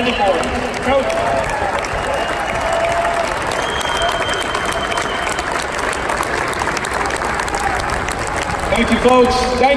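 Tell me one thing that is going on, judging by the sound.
A large crowd cheers and applauds in an echoing hall.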